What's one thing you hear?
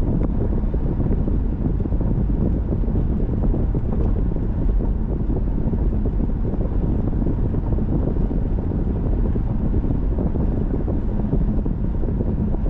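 Road noise rumbles steadily inside a moving car.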